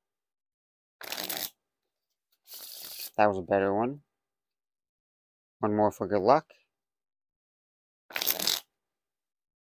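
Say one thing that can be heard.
Playing cards riffle and flutter as a deck is shuffled.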